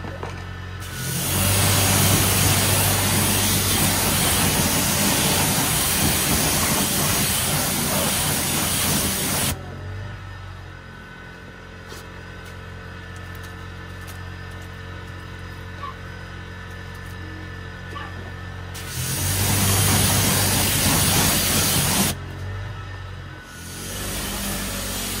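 A pressure washer sprays water hard against a wheel.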